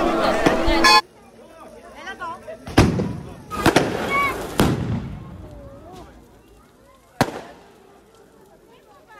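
A large bonfire crackles and roars.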